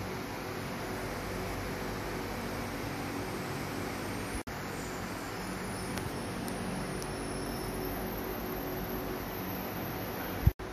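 Electric fans whir steadily in a large, echoing room.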